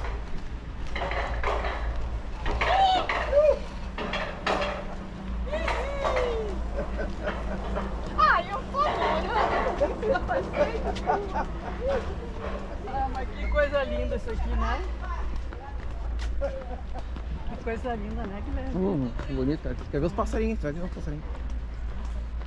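A woman talks and calls out cheerfully nearby.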